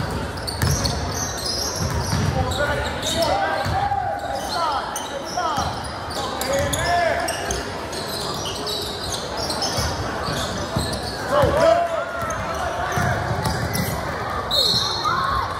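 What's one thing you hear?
Sneakers squeak sharply on the court.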